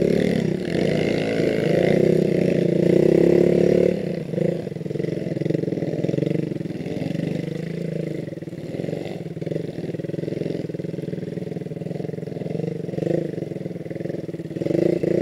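A dirt bike engine revs loudly up close, rising and falling.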